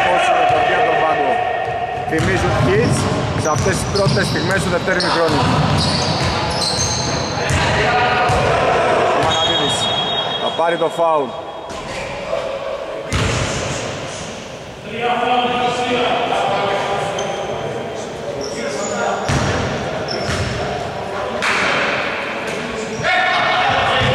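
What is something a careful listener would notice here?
Sneakers squeak sharply on a wooden court in an echoing gym.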